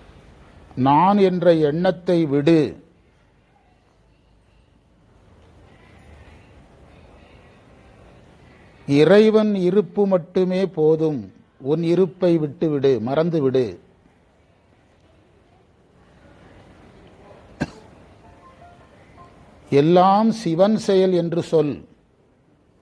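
A man sings in a slow chant through a microphone, in phrases broken by long pauses.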